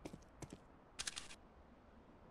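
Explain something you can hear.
A sniper rifle scope clicks as it zooms in.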